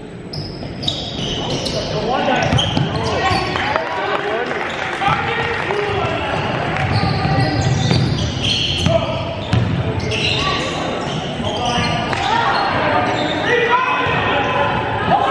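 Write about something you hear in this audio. Young players shout and call out to each other across the gym.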